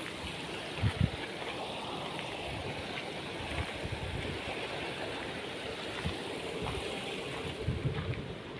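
A shallow river rushes and burbles steadily over stones.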